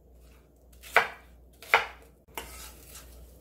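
Pieces of fruit thud into a glass blender jar.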